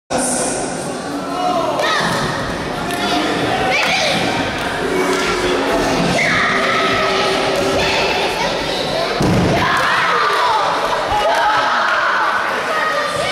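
A crowd of young people shouts and cheers in a large echoing hall.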